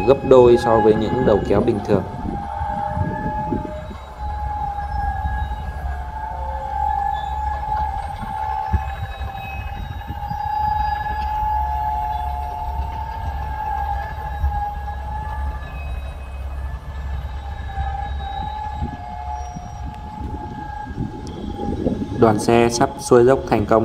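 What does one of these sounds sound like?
Heavy truck engines rumble slowly and steadily nearby.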